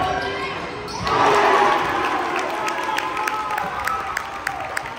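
Spectators clap their hands after a basket.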